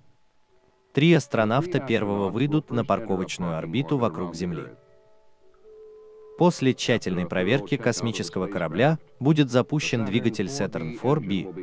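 A man speaks over a crackly radio link.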